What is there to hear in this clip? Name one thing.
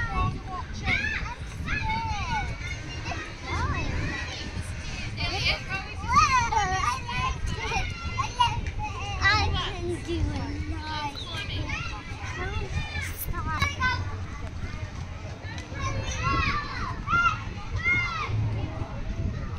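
Young children call out and squeal while playing nearby.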